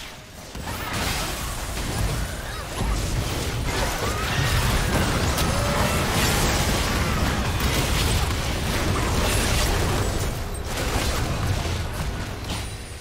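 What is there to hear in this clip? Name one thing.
Game spells and attacks crackle and boom in a fight.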